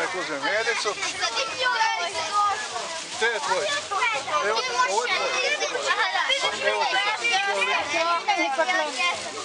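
Children chatter and talk with each other nearby.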